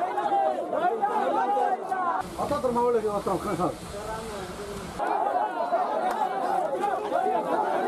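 A crowd of men shouts outdoors.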